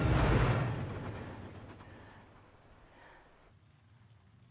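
A rifle shot rings out and echoes away outdoors.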